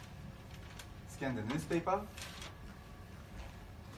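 Paper rustles as a newspaper is fed into a scanner.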